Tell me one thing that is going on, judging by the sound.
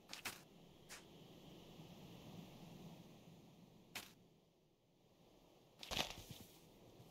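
Footsteps crunch softly on sand.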